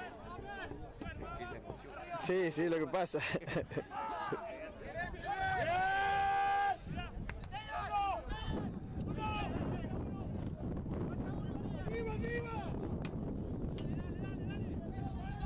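Young players shout to each other outdoors across an open field.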